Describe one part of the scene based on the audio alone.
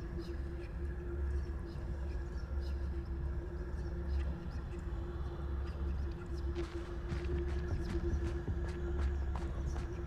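Footsteps crunch over frozen grass.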